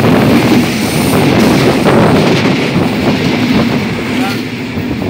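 A passing train roars by close at hand.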